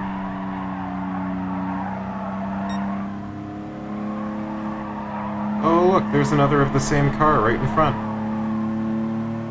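A car engine drones steadily at high revs.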